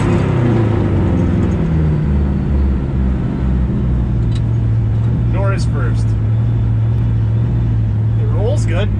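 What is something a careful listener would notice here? An old truck engine drones steadily while driving.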